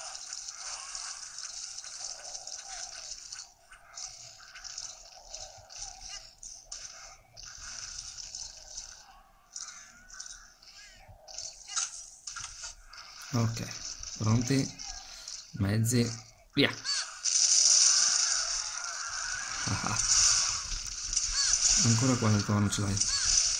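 Fast action game sounds play from a small handheld speaker.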